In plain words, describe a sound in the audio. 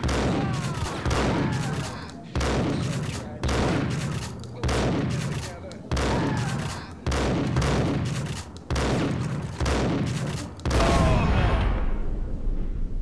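A shotgun fires again and again, loud and booming, each shot echoing off.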